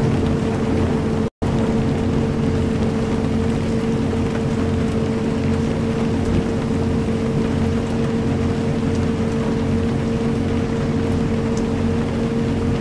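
A bus engine hums steadily at a low, even pitch.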